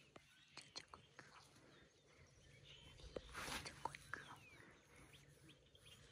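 A hand rubs a puppy's fur with a soft rustle.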